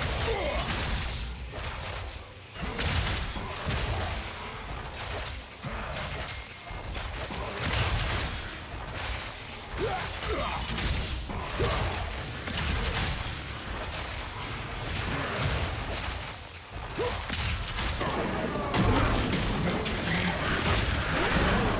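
Game combat effects crackle, zap and clash.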